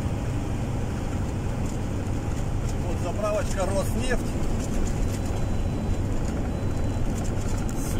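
A vehicle's engine rumbles steadily.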